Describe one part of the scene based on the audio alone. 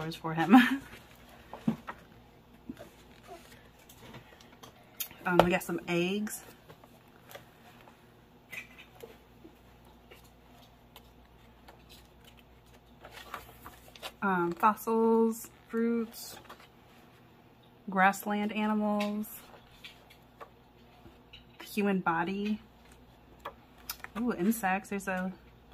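Book pages rustle and flap as they are turned quickly.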